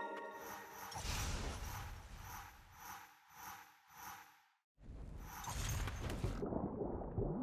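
Game sound effects whoosh and clash in quick bursts.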